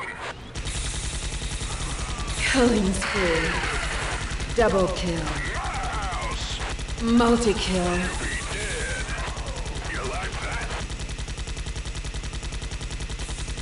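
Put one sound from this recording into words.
Rapid gunfire rattles steadily.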